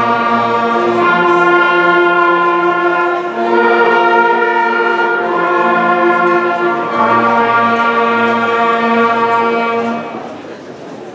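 A band plays a sustained final chord in a large echoing hall.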